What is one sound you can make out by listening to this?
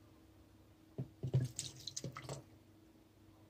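Liquid pours into a jug.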